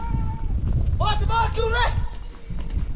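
A young woman calls out loudly outdoors at a distance.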